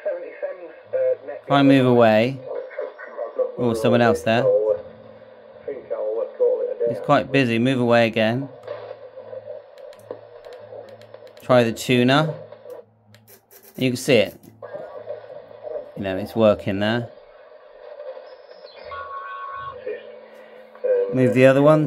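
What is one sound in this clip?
Radio static hisses and hums steadily between transmissions.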